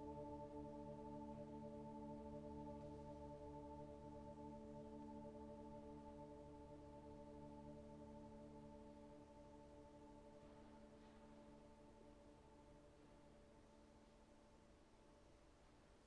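A steady electronic drone plays through loudspeakers in a quiet room and slowly fades away.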